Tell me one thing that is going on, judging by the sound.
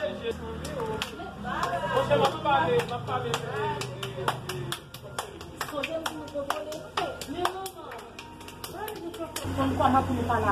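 Several women talk together nearby.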